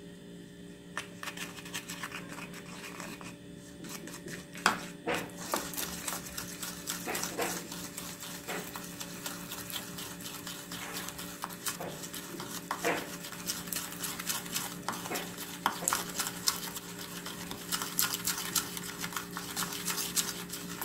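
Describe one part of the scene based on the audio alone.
A metal spoon scrapes and clinks against a small bowl.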